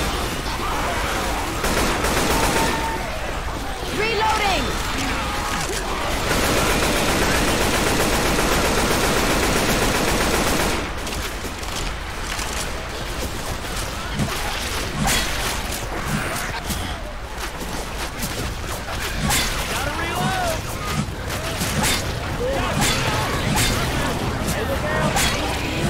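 Creatures snarl and growl nearby.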